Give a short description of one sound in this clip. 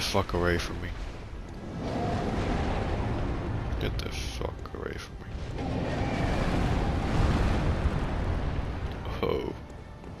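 A huge creature growls with a deep, steady rumble.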